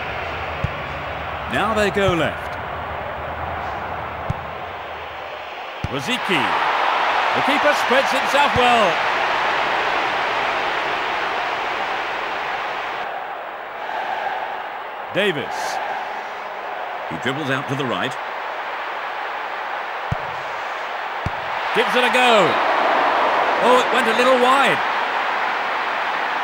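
A stadium crowd roars steadily, swelling now and then.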